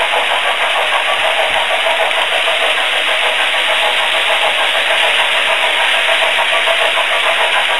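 A model train rattles and whirs steadily along its track close by.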